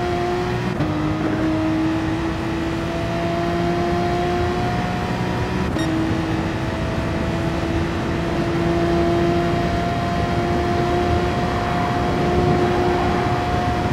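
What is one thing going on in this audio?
A racing car engine roars at high revs, dropping in pitch as the gears shift up and then climbing again.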